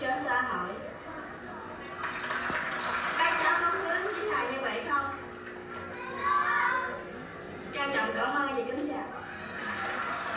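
A young girl speaks into a microphone over a loudspeaker, outdoors.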